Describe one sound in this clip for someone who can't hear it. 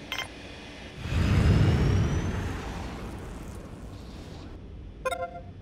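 A spaceship takes off with a low rumbling roar that slowly fades.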